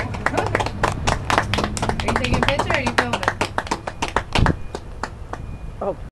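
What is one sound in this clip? Hands clap quickly in applause close by.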